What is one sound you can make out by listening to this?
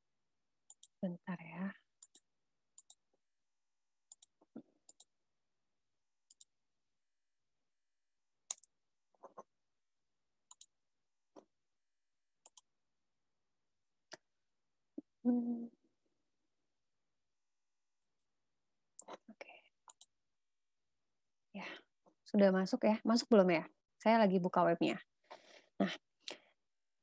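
A young woman speaks calmly in short bursts over an online call.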